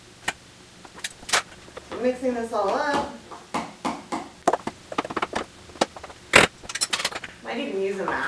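A spoon scrapes and clinks against a metal bowl.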